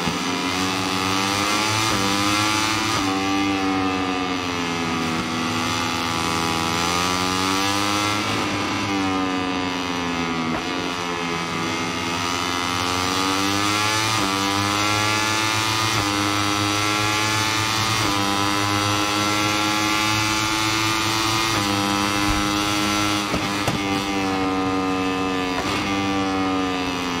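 A motorcycle engine roars at high revs, rising and falling as gears shift.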